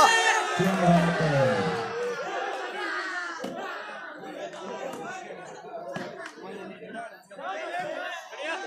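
A crowd of men shouts and cheers outdoors.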